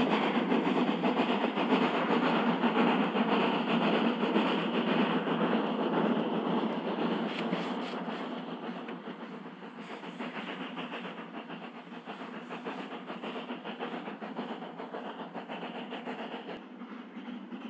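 A steam locomotive chuffs rhythmically as it pulls away.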